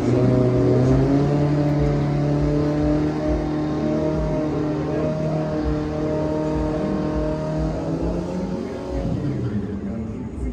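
A racing car engine roars loudly and fades into the distance.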